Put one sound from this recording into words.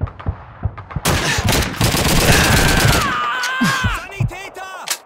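Gunshots crack loudly in rapid bursts.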